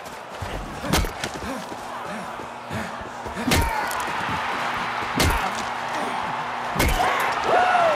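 A metal pipe strikes a body with heavy thuds.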